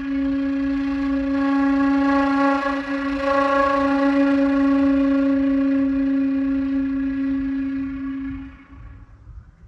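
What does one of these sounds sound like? A flute plays a long, steady held note that swells slightly and then stops.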